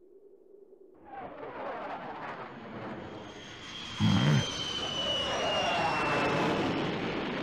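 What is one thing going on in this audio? A falling pod rushes through the air with a loud, rising roar.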